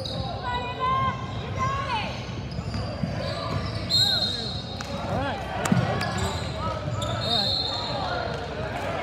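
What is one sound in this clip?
Young girls shout and call out to each other.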